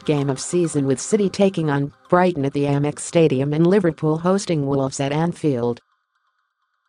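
A young woman reads out calmly and evenly, close to a microphone.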